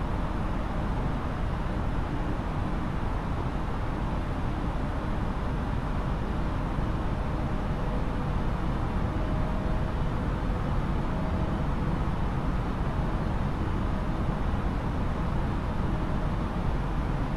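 Jet engines hum steadily with a low cockpit rumble.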